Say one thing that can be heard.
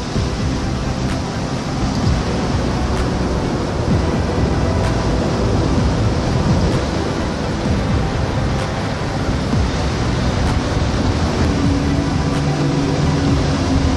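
Wind blows hard, rumbling and buffeting outdoors.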